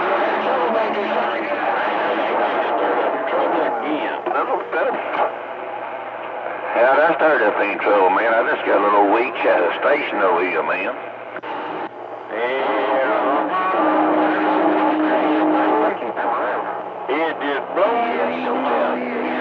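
Radio static hisses and crackles from a receiver.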